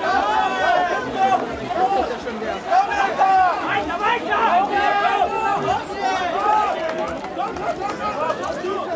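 A crowd of young people shout and cheer excitedly outdoors.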